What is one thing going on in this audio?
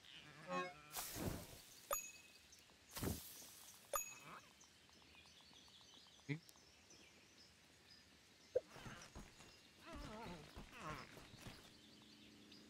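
A game menu opens with a soft whoosh.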